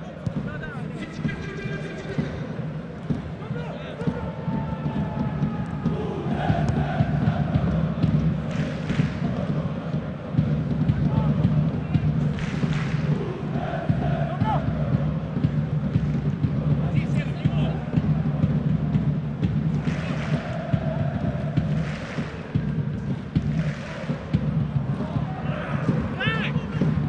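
A large stadium crowd chants and cheers steadily, heard from a distance.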